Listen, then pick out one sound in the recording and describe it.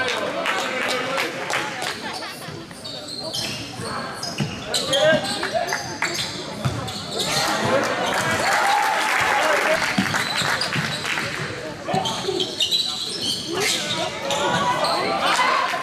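A crowd of spectators cheers and murmurs.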